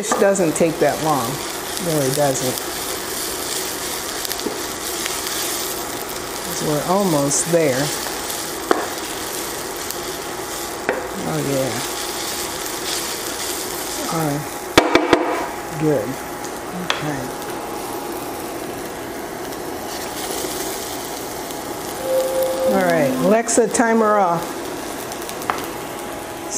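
Food sizzles in a frying pan.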